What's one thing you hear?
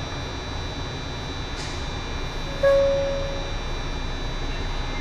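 A train hums low and steady from inside the cab.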